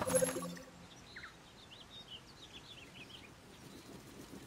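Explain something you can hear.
Small creatures chirp in quick, high squeaks.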